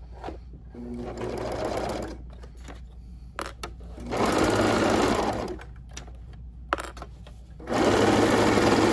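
A sewing machine whirs in quick bursts.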